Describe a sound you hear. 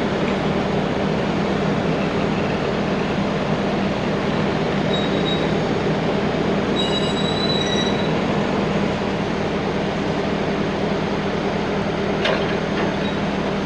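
A heavy truck engine idles with a steady low rumble.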